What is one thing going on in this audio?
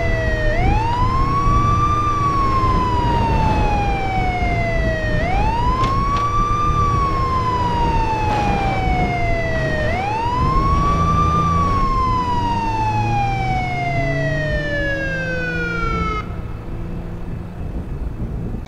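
An off-road SUV engine drones as it drives.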